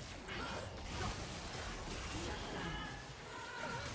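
Game spells crackle and whoosh during a fight.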